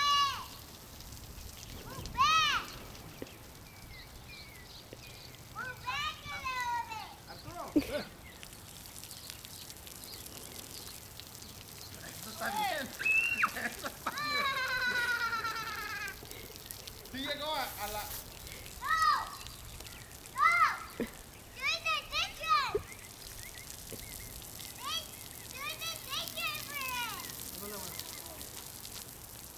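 A lawn sprinkler hisses as it sprays water nearby.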